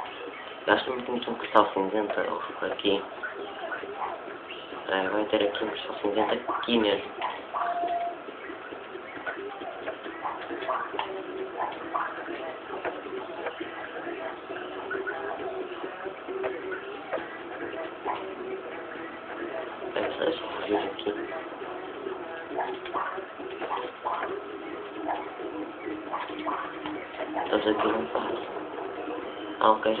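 Lively video game music plays through a television loudspeaker.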